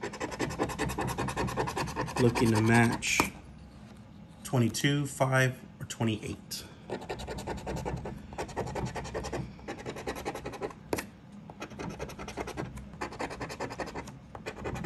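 A plastic scraper rapidly scratches at a card with a dry, rhythmic rasp.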